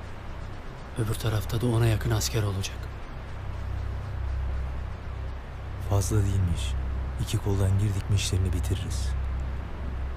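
A younger man answers quietly close by.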